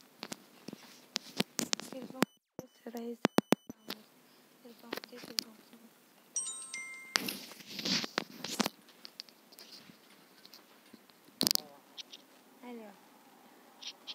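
A young woman speaks softly and close, heard through an earphone microphone.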